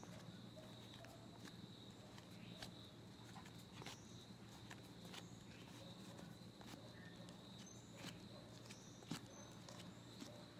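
Playing cards slap and slide softly onto a wooden table.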